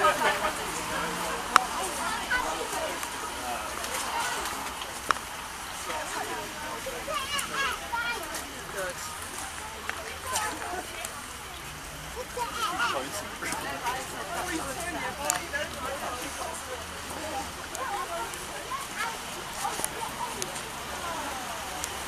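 A crowd of men and women chatter and call out all around, close by.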